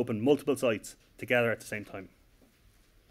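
A man speaks calmly into a microphone, heard over a loudspeaker.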